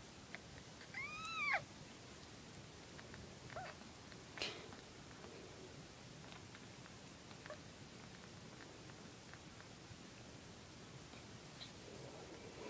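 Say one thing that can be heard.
A tiny kitten mews in high, thin cries.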